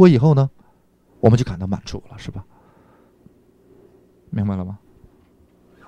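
A middle-aged man speaks in short bursts close by.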